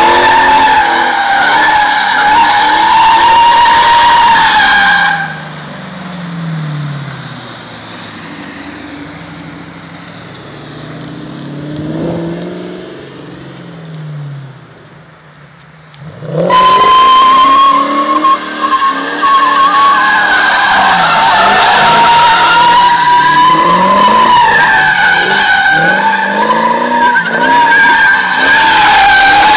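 Tyres screech on asphalt as a car slides sideways.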